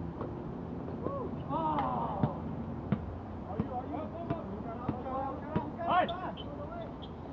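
Young men shout and call out to each other across an outdoor court.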